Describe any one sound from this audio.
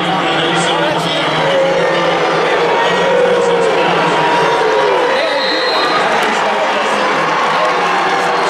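A large crowd murmurs and chatters in a large echoing arena.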